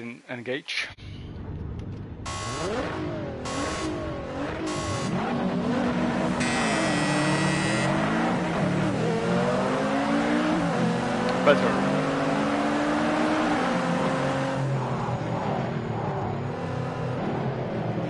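Several racing car engines rev and roar together.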